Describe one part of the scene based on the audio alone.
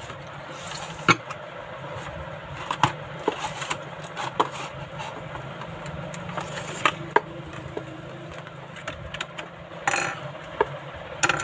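Stiff plastic packaging crinkles and crackles as hands handle it.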